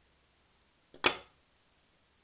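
A small metal blade clinks down onto a wooden bench.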